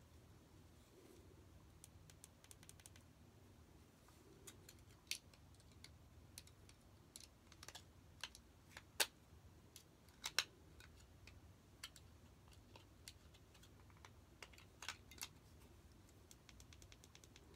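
Small plastic parts click and tap close by as they are handled.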